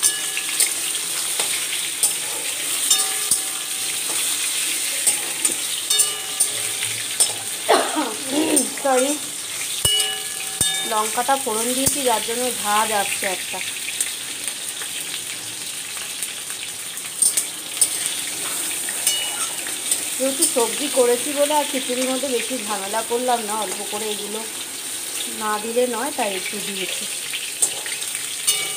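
Food sizzles steadily in hot oil.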